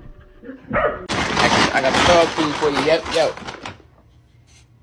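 A small dog makes a loud, strange whining noise.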